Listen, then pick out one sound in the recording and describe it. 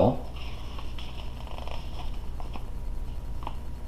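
A paper page rustles as a book is turned.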